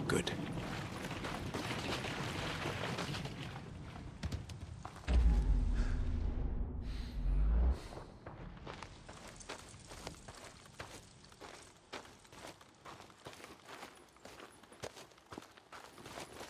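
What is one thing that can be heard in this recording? Footsteps crunch on dry dirt and grass.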